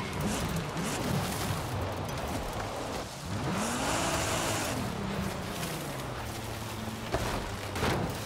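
A sports car engine revs up and down.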